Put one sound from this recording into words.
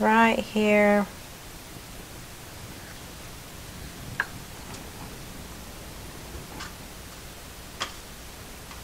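A thin stick taps lightly against a small tin can.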